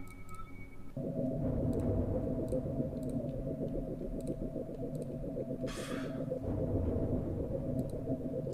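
Soft music plays steadily.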